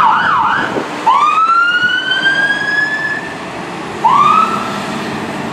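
A second siren whoops up in short bursts.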